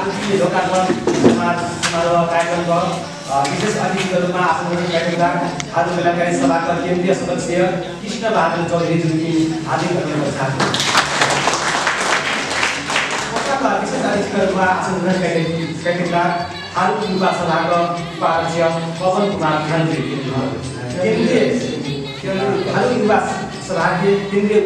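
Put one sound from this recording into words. A man reads out loud in an echoing room.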